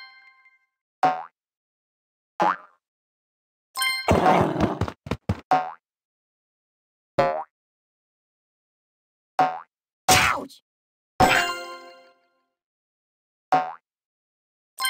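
A cartoon ball bounces with short springy game sound effects.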